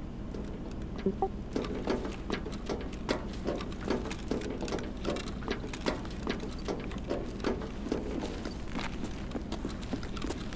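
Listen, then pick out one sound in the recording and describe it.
Footsteps thud steadily on a hard floor, echoing slightly.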